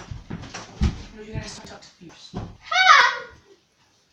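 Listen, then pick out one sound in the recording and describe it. Feet thump on a floor.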